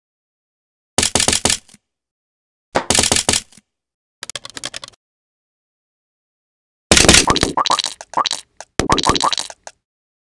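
Bricks shatter in short crunching bursts.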